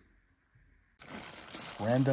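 A plastic bag crinkles as a hand handles it.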